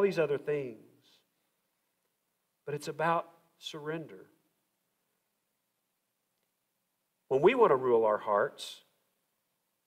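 A man preaches through a microphone in a large echoing hall, speaking in short, measured phrases with long pauses.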